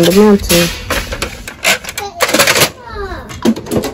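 A paper tray is pushed shut into a printer with a knock.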